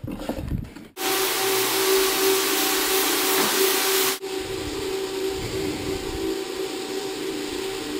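A floor buffer motor whirs and hums steadily.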